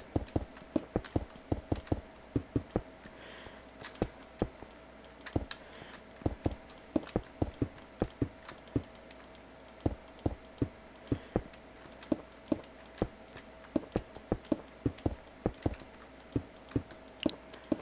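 Stone blocks knock and thud in quick, uneven bursts as they are placed.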